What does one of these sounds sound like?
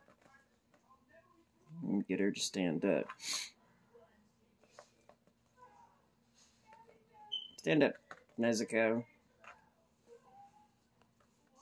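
Small plastic toy joints click softly as hands pose a figure.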